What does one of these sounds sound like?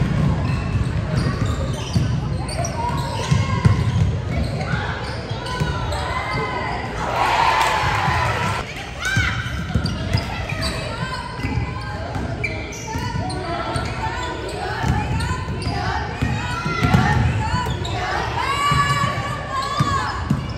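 Young women shout and call out to each other across a large echoing gym.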